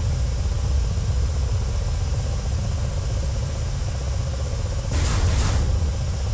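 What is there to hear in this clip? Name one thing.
A helicopter's rotor and engine drone steadily from inside the cockpit.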